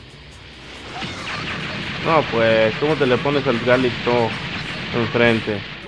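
An energy blast whooshes and roars.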